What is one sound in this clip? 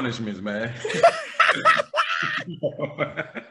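A man laughs loudly over an online call.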